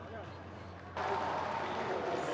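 A woman cheers with delight.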